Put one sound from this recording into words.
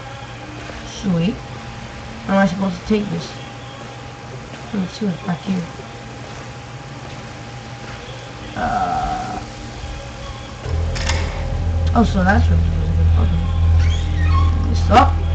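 A teenage boy talks with animation, close to a microphone.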